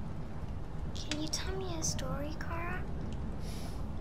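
A young girl asks a question quietly, close by.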